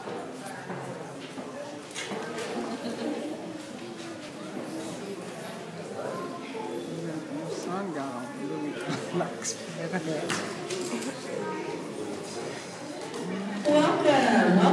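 An audience murmurs and chatters nearby.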